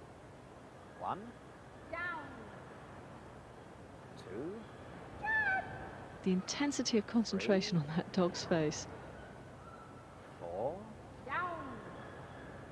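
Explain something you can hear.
A woman calls short commands to a dog in a large hall.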